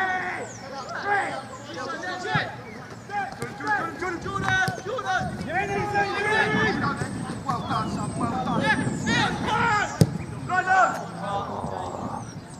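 Men shout and call to each other outdoors across an open field.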